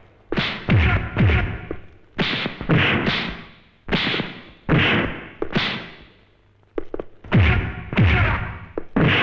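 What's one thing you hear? Heavy punches and kicks land with loud, booming thuds, one after another.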